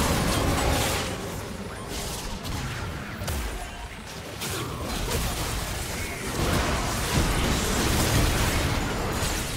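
Game spell effects whoosh and crackle in a fast fight.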